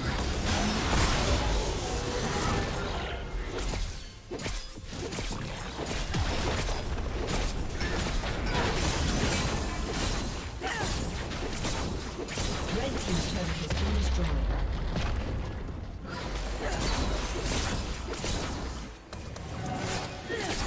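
Video game combat effects crackle, slash and burst in quick succession.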